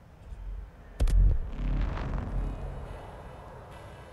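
A heavy metallic thud booms, followed by a rumbling whoosh that fades.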